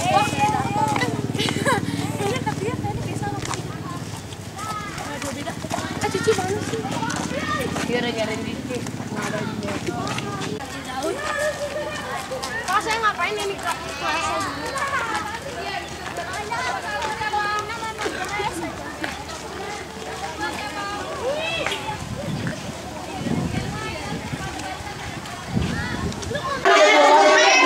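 Children chatter and call out close by, outdoors.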